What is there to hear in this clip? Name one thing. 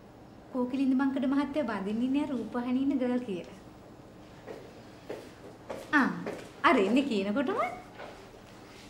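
A woman speaks cheerfully nearby.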